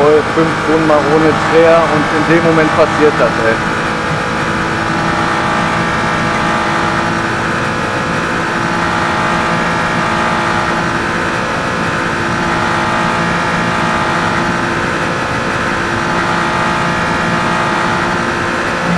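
A racing car engine roars at high revs, holding a steady pitch.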